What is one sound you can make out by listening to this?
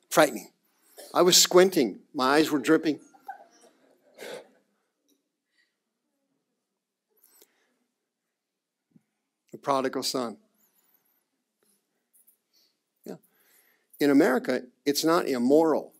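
A middle-aged man speaks to an audience through a microphone, pausing between phrases.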